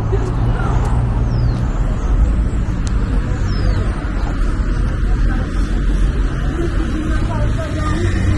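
Footsteps tap on a paved walkway outdoors.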